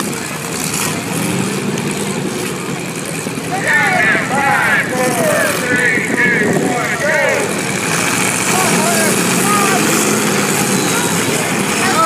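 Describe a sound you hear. Car engines roar and rev in a dirt arena.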